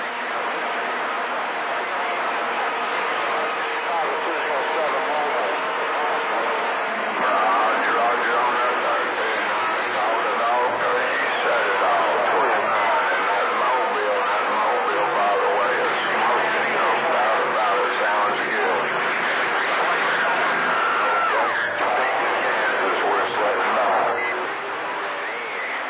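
A radio receiver hisses and crackles with static through its loudspeaker.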